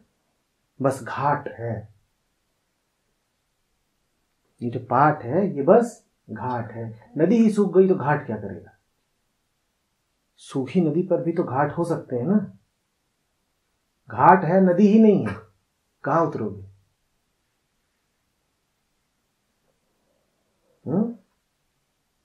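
A man speaks calmly and thoughtfully into a close microphone, with long pauses.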